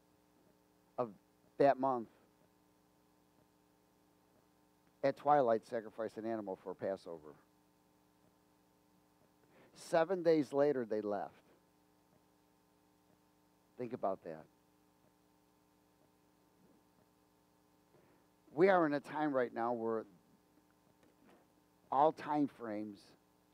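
A middle-aged man speaks with animation through a headset microphone, in bursts with pauses.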